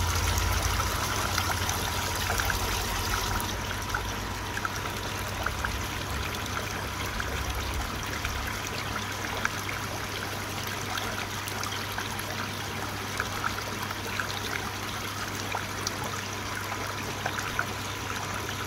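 Small bubbles pop softly on the water's surface.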